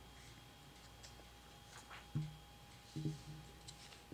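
Paper rustles as a page turns.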